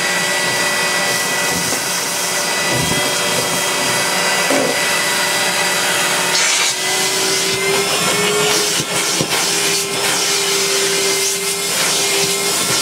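A vacuum cleaner runs with a steady loud whine.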